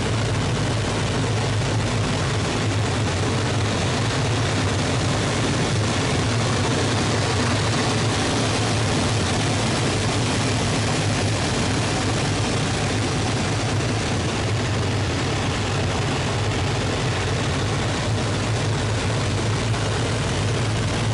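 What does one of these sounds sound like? Wind rushes loudly past the cockpit.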